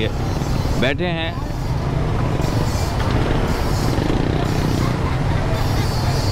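A busy street crowd murmurs and chatters.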